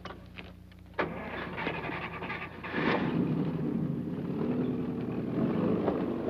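A car engine starts and runs.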